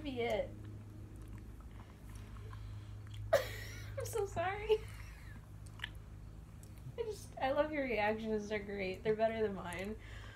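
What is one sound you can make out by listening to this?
A young woman laughs softly close by.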